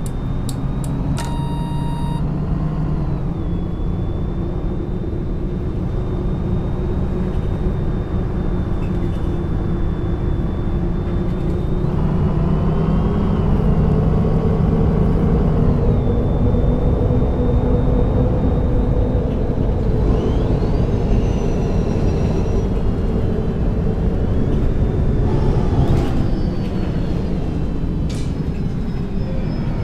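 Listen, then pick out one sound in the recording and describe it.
A bus engine hums and whines steadily as the bus drives along.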